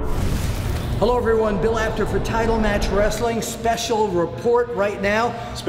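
An elderly man speaks with animation into a microphone, close by.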